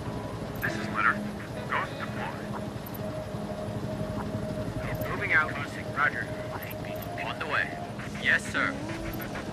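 Tank engines rumble and clank steadily.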